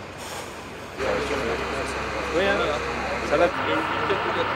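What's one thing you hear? Men talk in a crowd outdoors.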